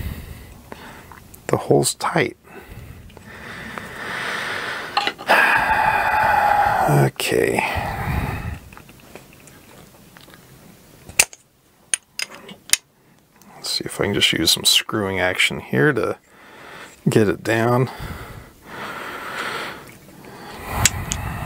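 Small metal parts click and clink as hands fit them together.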